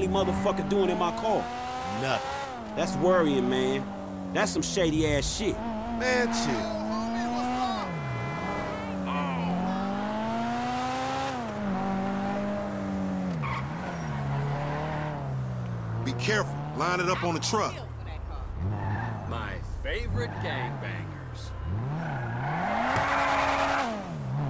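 A sports car engine roars and revs up and down as the car speeds along.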